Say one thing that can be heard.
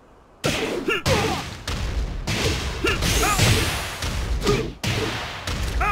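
A burst of energy crackles and booms on impact.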